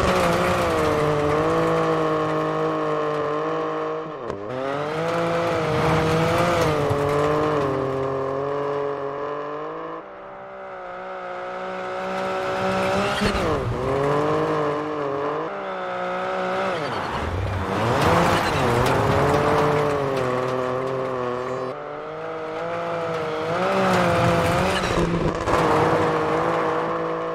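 Tyres of a rally car crunch and spray loose gravel.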